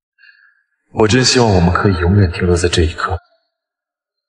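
A young man speaks softly and tenderly up close.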